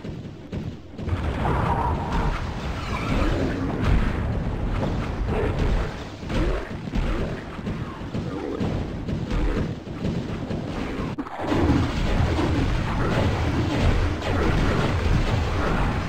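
Electric spells crackle and zap loudly.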